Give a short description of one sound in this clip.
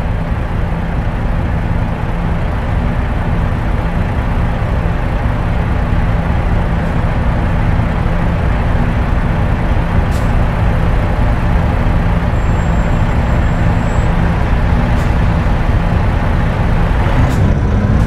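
A truck engine idles with a deep, steady rumble.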